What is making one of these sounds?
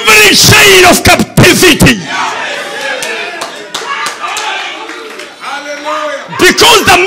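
A man preaches forcefully through a microphone, his voice loud and echoing in a large hall.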